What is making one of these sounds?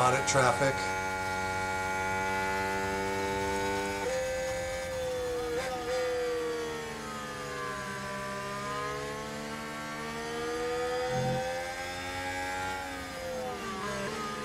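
A racing car engine roars steadily, its pitch rising and falling through gear changes.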